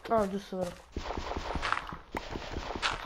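A block crunches repeatedly as it is dug out.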